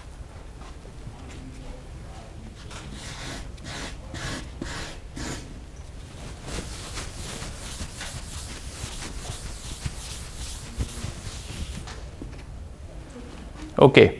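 A man speaks calmly at a distance in an echoing room.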